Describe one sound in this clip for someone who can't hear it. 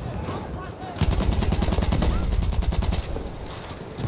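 A rifle fires rapid shots at close range.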